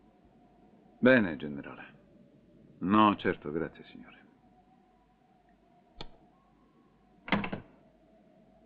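A middle-aged man speaks calmly into a phone.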